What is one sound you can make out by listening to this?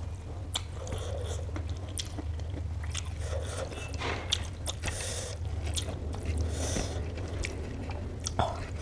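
Fingers squish and press soft rice and food close up.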